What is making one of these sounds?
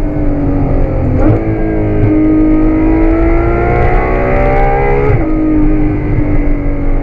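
A car engine roars loudly from inside the cabin, its pitch climbing through the gears with quick drops at each shift.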